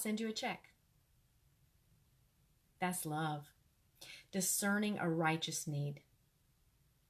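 A middle-aged woman speaks expressively and close up, in short bursts with pauses.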